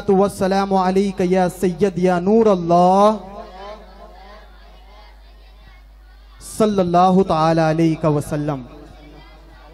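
A young man sings a drawn-out melody into a microphone, heard through loudspeakers with a lingering echo.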